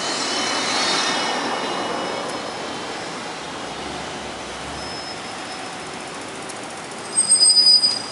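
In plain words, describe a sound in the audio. Cars drive past on a street.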